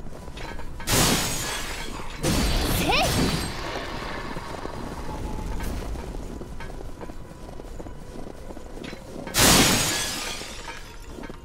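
Wooden crates smash apart with a loud crash.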